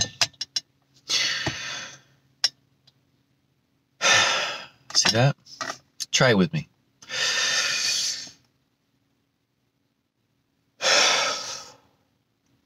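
A young man breathes out heavily.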